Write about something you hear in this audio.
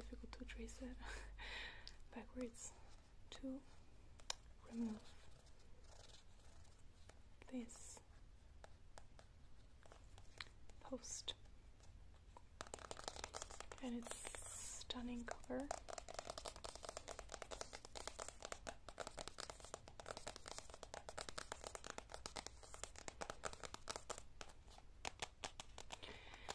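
Long fingernails tap and scratch on a book cover.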